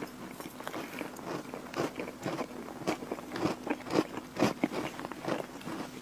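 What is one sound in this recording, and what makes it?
A young woman chews a mouthful of chocolate cookie cheesecake close to a microphone, with wet smacking sounds.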